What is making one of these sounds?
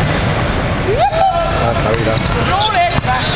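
A volleyball is struck with a hard smack.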